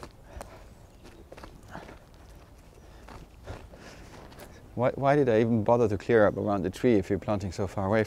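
A spade digs and scrapes into soil.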